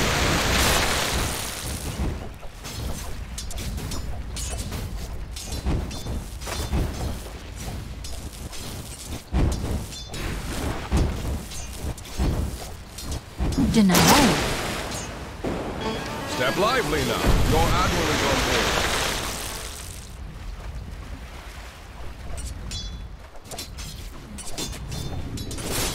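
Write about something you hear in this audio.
Clashing blows and magic blasts burst in quick succession in a game battle.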